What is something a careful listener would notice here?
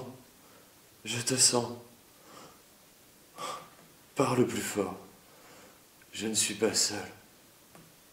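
A man speaks in strained, halting bursts close by.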